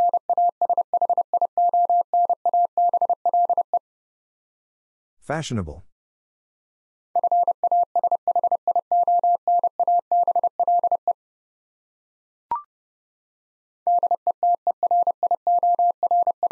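Morse code beeps sound in quick, steady bursts.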